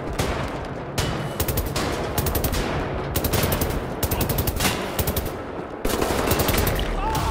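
A gun fires rapid bursts of shots in an echoing space.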